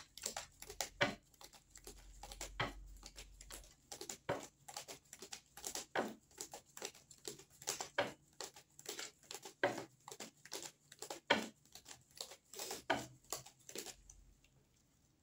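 Playing cards are shuffled with quick, soft flicks and taps.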